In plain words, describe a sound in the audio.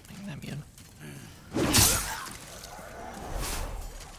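A sword strikes with a sharp clash.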